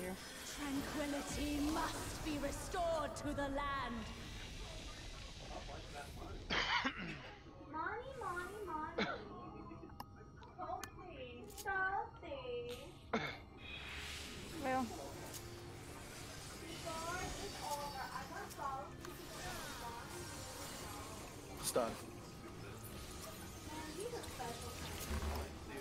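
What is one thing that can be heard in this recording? A middle-aged woman talks casually into a close microphone.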